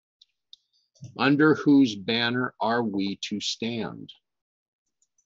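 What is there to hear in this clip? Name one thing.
An elderly man reads out calmly, close to a microphone.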